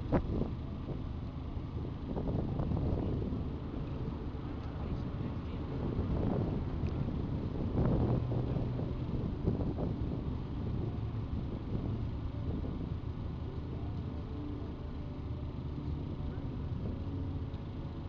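A large crowd of men and women murmurs and talks quietly nearby outdoors.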